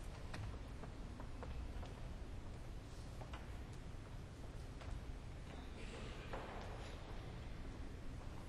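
Footsteps tap on a stone floor in a large echoing hall.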